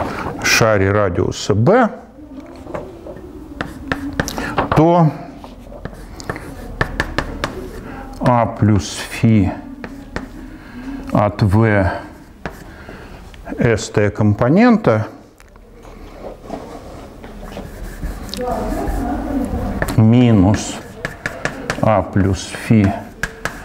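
An elderly man speaks calmly in an echoing room.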